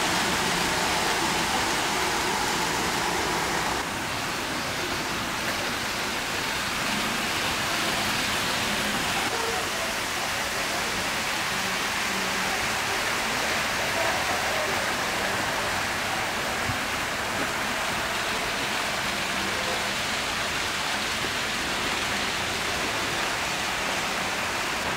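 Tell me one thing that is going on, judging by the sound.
Model trains rumble and whir along their tracks.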